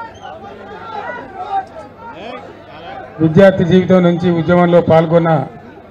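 A man speaks forcefully through a microphone over loudspeakers.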